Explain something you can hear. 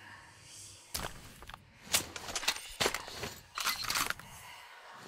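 A rifle clicks and clacks as it is reloaded.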